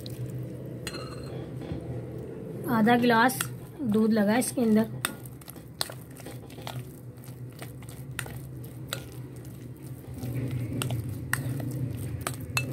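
A fork scrapes and clinks against a bowl.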